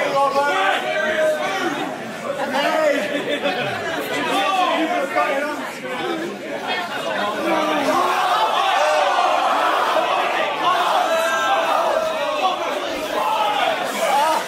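A crowd of men and women cheers and shouts loudly in an echoing hall.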